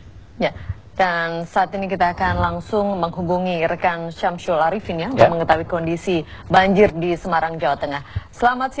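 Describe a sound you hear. A young woman speaks calmly and clearly into a microphone, close by.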